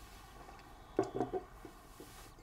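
A mug is set down on a table with a knock.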